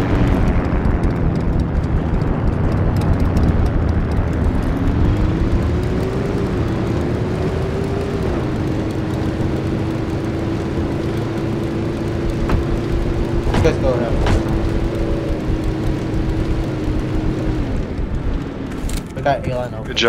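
A motorcycle engine rumbles steadily and revs.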